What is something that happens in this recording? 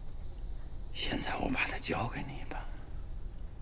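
An older man speaks quietly and seriously, close by.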